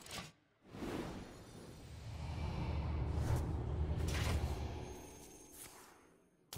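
A magical burst swells and rumbles.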